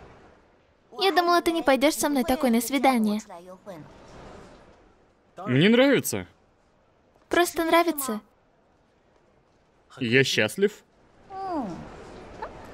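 An older woman speaks cheerfully nearby.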